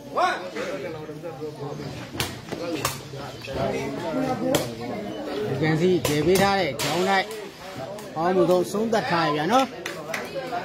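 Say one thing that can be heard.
A ball is kicked with sharp slaps.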